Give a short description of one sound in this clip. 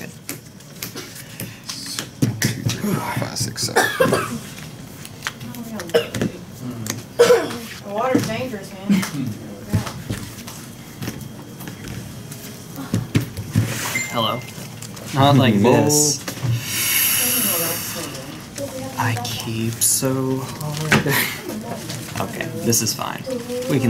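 Playing cards slide and tap on a soft table mat.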